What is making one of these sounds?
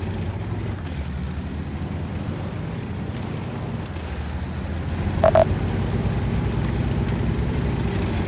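Tank tracks clatter over cobblestones.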